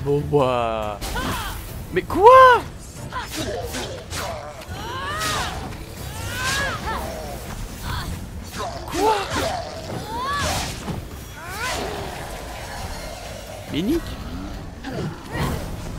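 Sword blows and magic blasts hit with sharp thuds and crackles.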